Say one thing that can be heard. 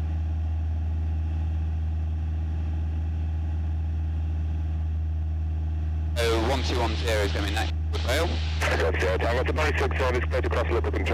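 The piston engine of a Cessna 172 drones in cruise flight, heard from inside the cabin.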